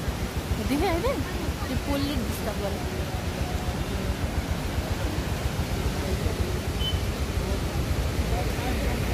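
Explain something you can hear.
A flooded river roars and rushes steadily.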